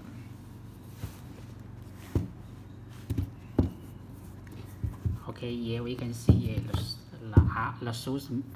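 Hands handle a sneaker with soft thumps and rustles.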